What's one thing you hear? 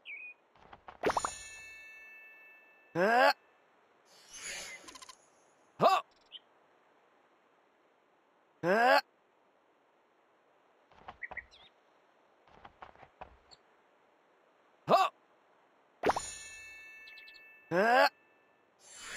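Bright sparkling chimes ring out with short rising whooshes.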